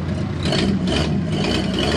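Mud splashes around a truck's tyres.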